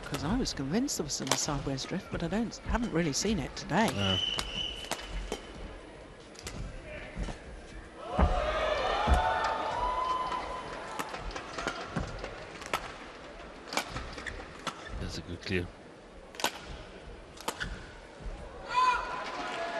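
A shuttlecock is struck sharply back and forth by rackets.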